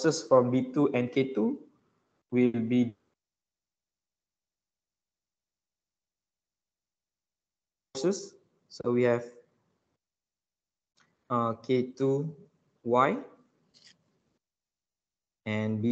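A man explains calmly through an online call, pausing often.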